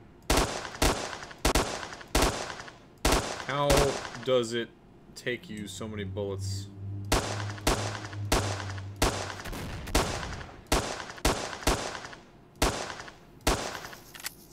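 Rifle shots crack in quick succession.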